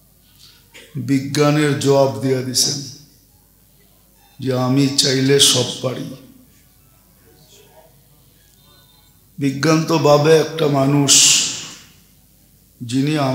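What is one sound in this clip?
An elderly man preaches through a microphone in bursts, with long pauses, his voice ringing out over a loudspeaker.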